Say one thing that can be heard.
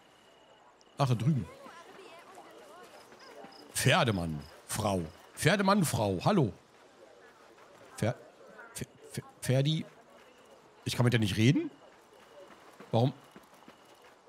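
A man talks with animation into a microphone, close up.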